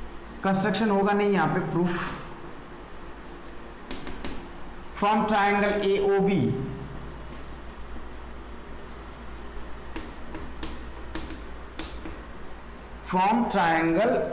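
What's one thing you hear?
A young man speaks calmly and clearly, explaining.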